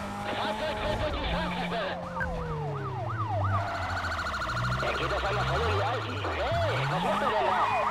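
Police sirens wail nearby.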